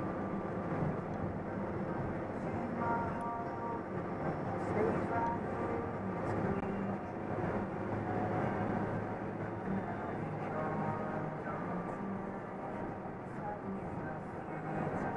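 A vehicle's engine hums steadily while driving.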